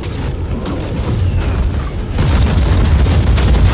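Gunfire rattles rapidly.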